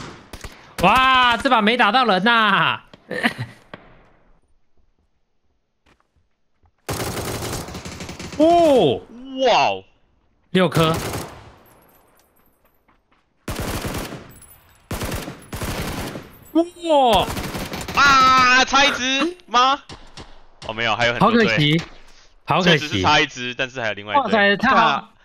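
A young man talks and shouts excitedly into a microphone.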